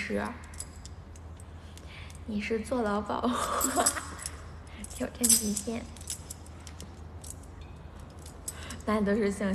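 A young woman talks cheerfully and close by.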